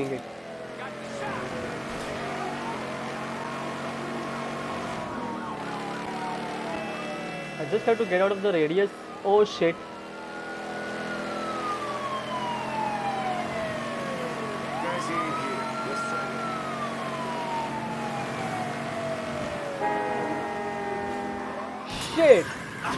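A car engine hums steadily as the car speeds along.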